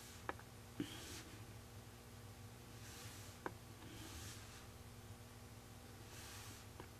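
A dotting tool taps lightly on a hard painted surface.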